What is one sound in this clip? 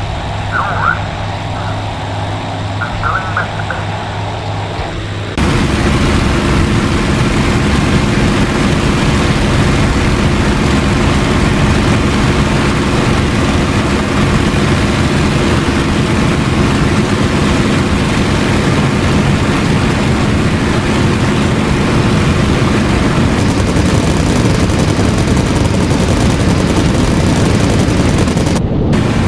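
A propeller aircraft engine drones steadily, growing louder and rougher partway through.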